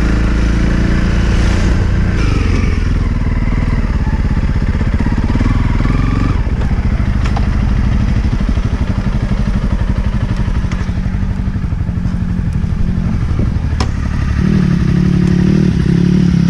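A second motorcycle approaches and passes along a dirt track.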